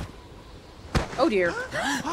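A body drops onto snowy ground with a thud.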